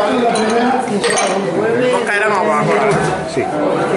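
Glasses clink as they are set down on a counter.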